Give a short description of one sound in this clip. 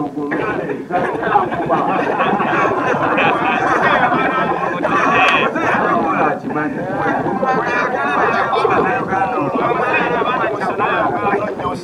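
Several men talk over one another close by.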